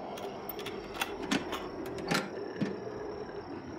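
Metal latches on a toolbox click open.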